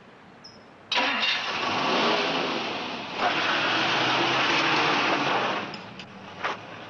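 A car engine starts and roars as the car pulls away.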